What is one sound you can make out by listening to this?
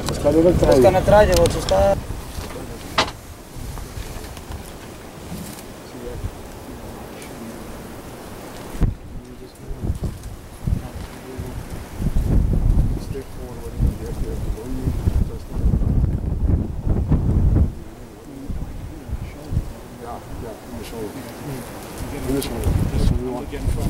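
A man speaks quietly and tensely close by.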